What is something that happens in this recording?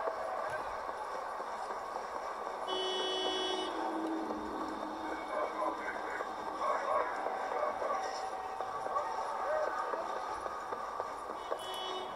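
A car engine hums through small loudspeakers.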